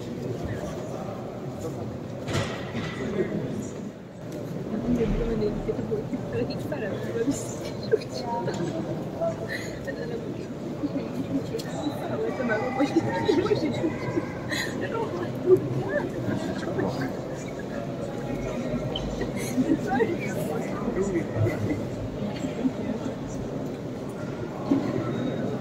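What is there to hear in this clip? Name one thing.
A crowd of visitors murmurs and chatters in a large echoing hall.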